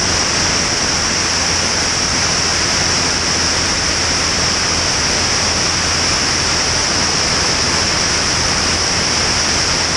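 Wind roars loudly past a small airplane in flight.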